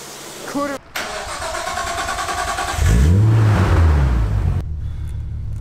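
A car engine starts up and revs loudly.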